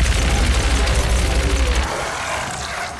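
A gun fires with loud blasts.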